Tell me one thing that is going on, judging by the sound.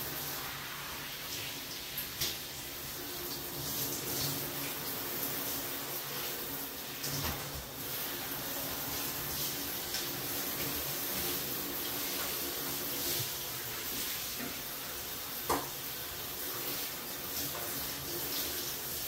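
A sponge scrubs against the inside of a bathtub with a soft rhythmic swishing.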